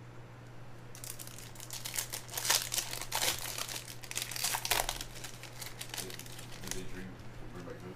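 A foil card wrapper crinkles and tears open.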